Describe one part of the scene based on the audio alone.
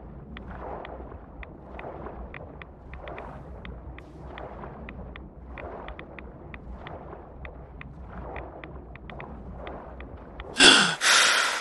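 Muffled water swirls and pulses rhythmically with swimming strokes underwater.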